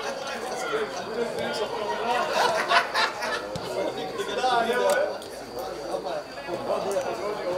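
Football players call out to each other across an open field.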